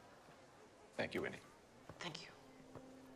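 A woman speaks briskly close by.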